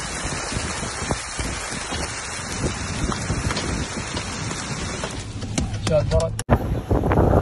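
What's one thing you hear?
Heavy rain and wind roar outdoors.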